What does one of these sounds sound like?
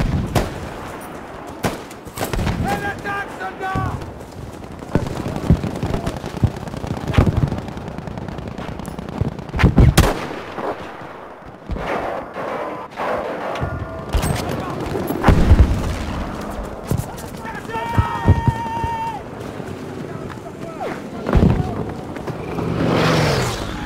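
Explosions boom and rumble across a battlefield.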